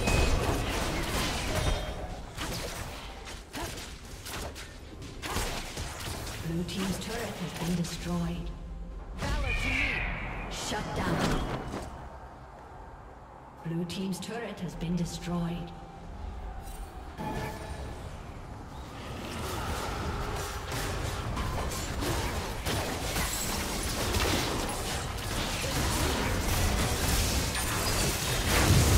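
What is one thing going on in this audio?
Game spell effects crackle and blast during fights.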